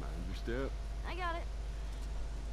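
A girl answers briefly.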